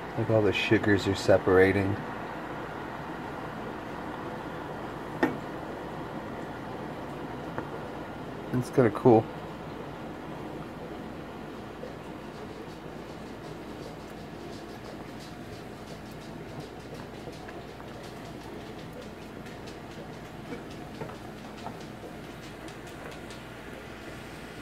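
A wooden spoon scrapes and taps against a pan.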